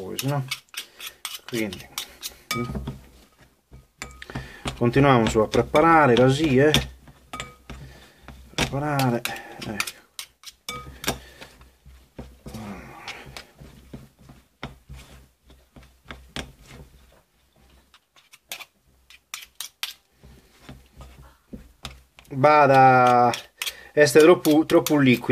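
A spoon scrapes and taps against a bowl as a mixture is stirred.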